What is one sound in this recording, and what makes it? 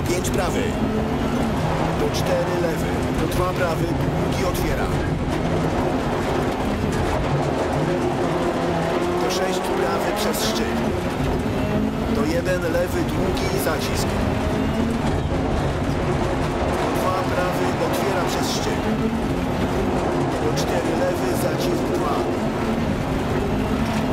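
A rally car engine roars and revs hard, rising and falling in pitch.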